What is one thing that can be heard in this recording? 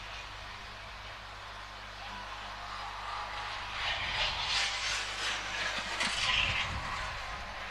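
Greyhounds gallop past on a sand track.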